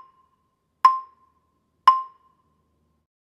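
Mallets strike wooden marimba bars, each note ringing briefly.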